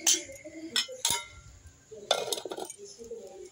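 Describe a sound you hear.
A metal plate clatters onto a clay pot.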